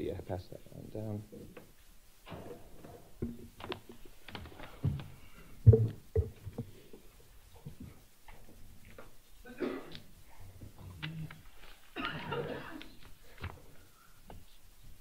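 Men talk quietly among themselves.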